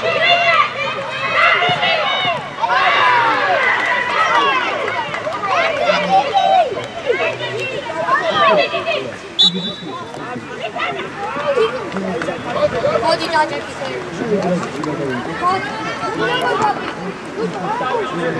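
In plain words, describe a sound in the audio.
Young players shout to each other across an outdoor field.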